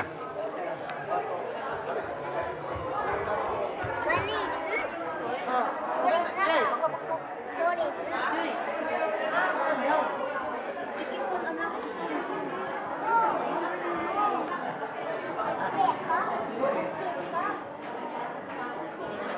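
A crowd of adults chatters all around in a large echoing hall.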